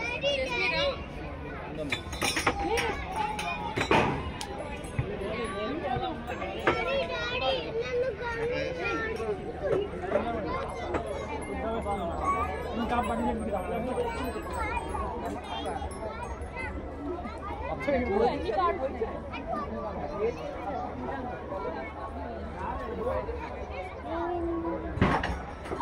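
A crowd of adults and children chatters all around outdoors.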